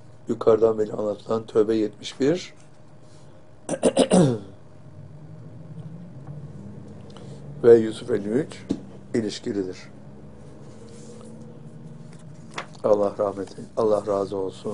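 An elderly man reads aloud calmly and slowly into a microphone, with long pauses.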